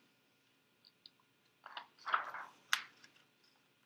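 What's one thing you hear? A page of a book turns with a soft rustle.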